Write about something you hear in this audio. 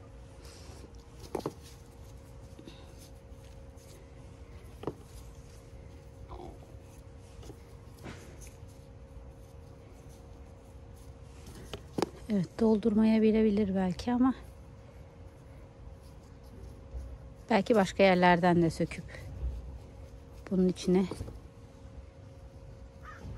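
Hands rustle through plant cuttings.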